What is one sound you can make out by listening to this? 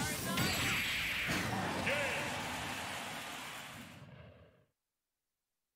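A heavy game blast booms and then slowly fades away.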